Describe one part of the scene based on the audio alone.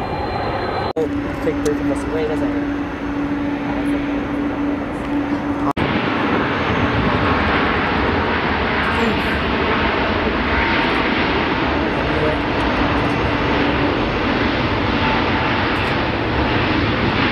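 Jet engines roar loudly and steadily as a large airliner rolls along a runway.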